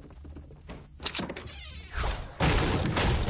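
A pickaxe swings and strikes wood with a sharp knock.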